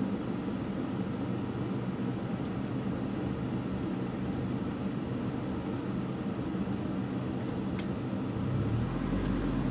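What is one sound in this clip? A car engine idles with a low hum.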